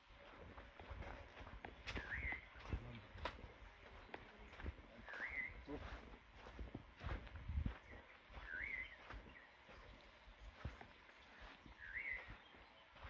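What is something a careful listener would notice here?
Footsteps crunch and rustle through dry brush.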